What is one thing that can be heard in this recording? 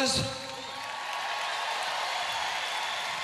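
A large crowd cheers and applauds.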